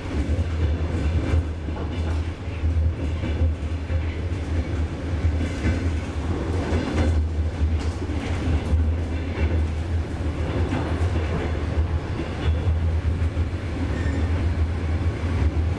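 A train rumbles and hums steadily as it travels.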